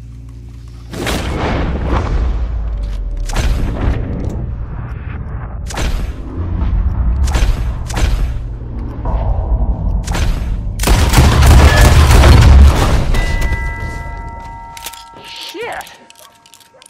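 Gunshots crack loudly in rapid bursts.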